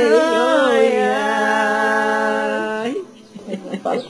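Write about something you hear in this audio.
An elderly woman sings a held note close by.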